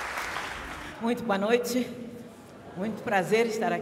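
An older woman sings through a microphone in a large hall.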